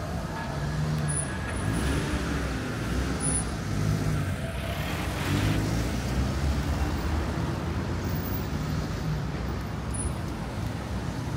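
Car engines rumble as cars pass close by.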